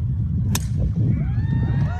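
A crowd cheers and whistles after the shot.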